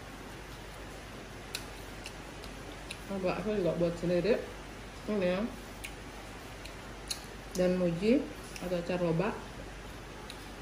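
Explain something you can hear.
A young woman chews and smacks her lips softly.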